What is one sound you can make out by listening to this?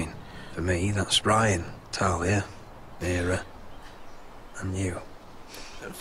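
A man speaks softly and sadly, close by.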